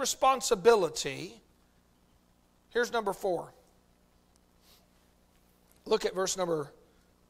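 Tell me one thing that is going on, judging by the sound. A middle-aged man speaks slowly and clearly through a microphone, in short phrases with pauses.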